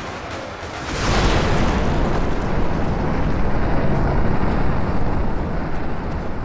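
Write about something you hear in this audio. A huge explosion booms and rumbles away.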